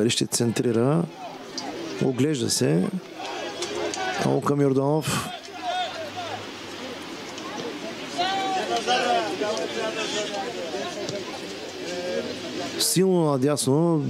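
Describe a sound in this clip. Young men shout loudly across an open field.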